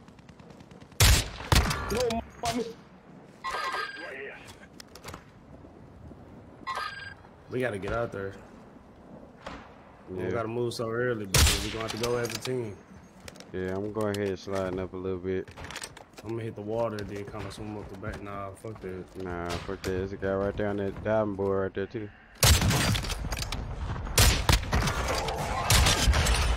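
Sniper rifle shots crack loudly.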